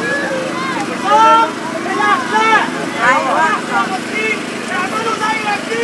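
A crowd of men and women chants and shouts loudly outdoors.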